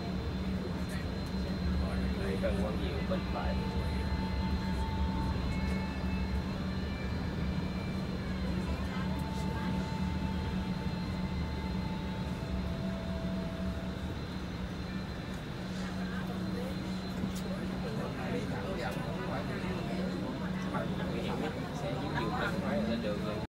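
Motorbikes buzz past in busy street traffic.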